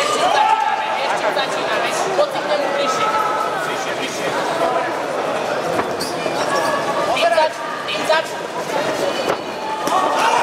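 Boxing gloves thud against each other and against bodies.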